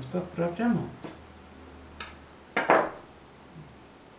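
A small metal spatula is set down on a table with a light knock.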